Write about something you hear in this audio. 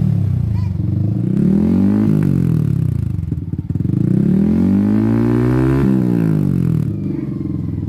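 A motorcycle engine revs up hard and falls back, several times.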